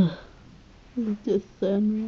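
A plush toy squeaks as a hand squeezes it.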